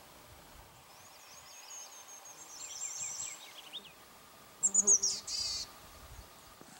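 A bird chirps and calls from the trees.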